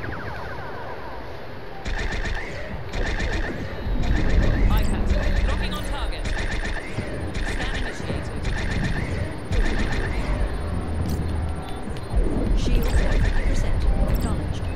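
Electronic console buttons beep as they are pressed.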